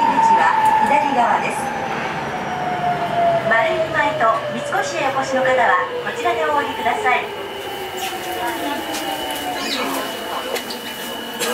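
A subway train's motor whines and slides steadily down in pitch as the train slows.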